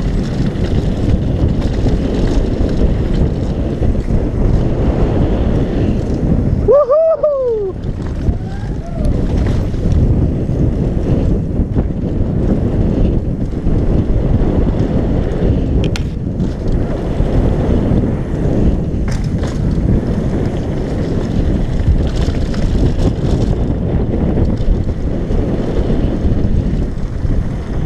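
Wind rushes loudly past a helmet at speed.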